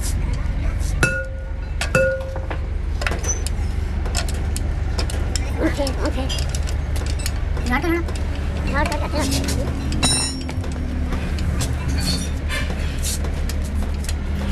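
Metal tools clink and scrape against a brake drum.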